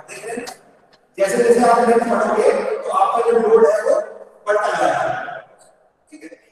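A young man speaks in a lecturing tone, close by.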